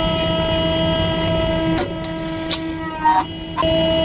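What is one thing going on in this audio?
A plastic jar creaks and bursts under a hydraulic press.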